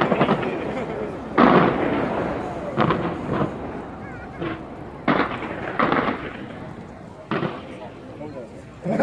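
Fireworks boom in the distance.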